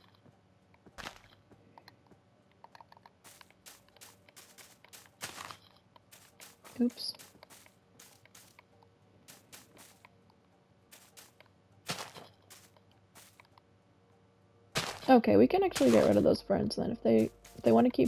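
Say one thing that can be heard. Soft short clicks and rustles sound again and again as petals are placed.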